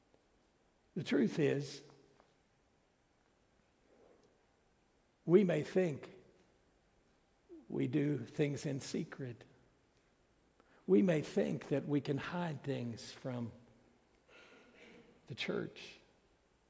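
A middle-aged man preaches with animation through a microphone, in short bursts with pauses.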